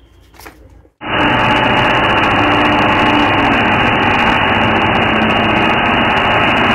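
A power tool runs against a metal frame.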